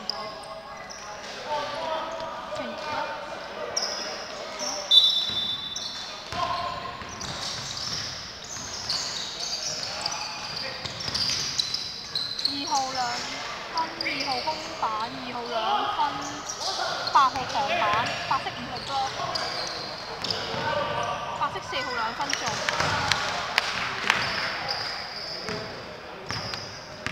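Young men call out to each other in a large echoing gym.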